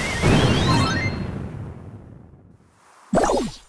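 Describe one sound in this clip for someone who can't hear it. Bright electronic celebration chimes ring out and slowly fade.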